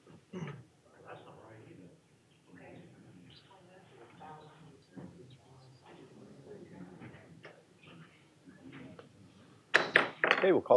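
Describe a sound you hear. A man speaks calmly into a microphone at a distance.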